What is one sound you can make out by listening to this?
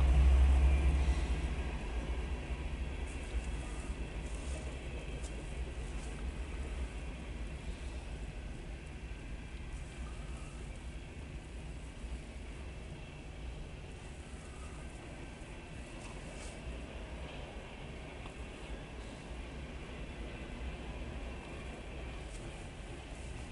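A freight train rumbles steadily past, heard from inside a car.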